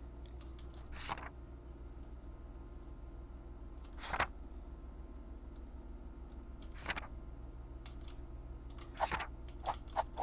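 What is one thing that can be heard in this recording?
Notebook pages flip with quick soft swishes.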